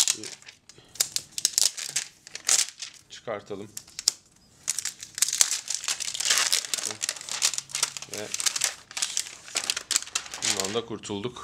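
Plastic film crinkles and rustles as it is peeled away.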